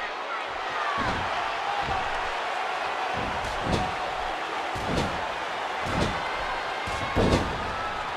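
Punches land with sharp smacks.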